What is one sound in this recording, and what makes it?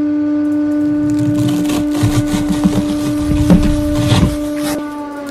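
A young man crunches loudly on food close up.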